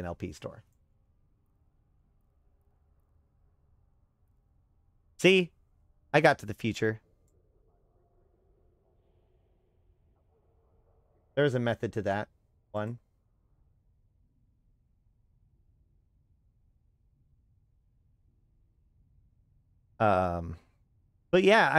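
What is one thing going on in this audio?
A man speaks close to a microphone in short, casual bursts.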